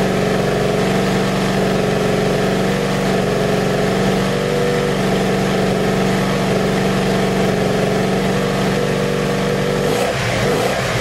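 A motorcycle engine idles loudly and steadily.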